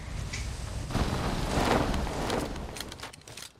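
A young man talks quietly close to a microphone.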